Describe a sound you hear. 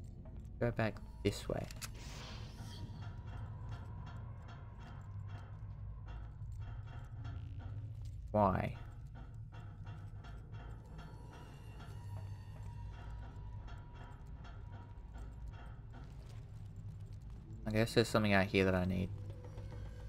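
A young man talks into a microphone now and then.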